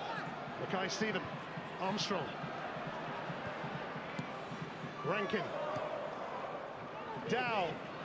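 A large crowd murmurs and chants steadily in a stadium.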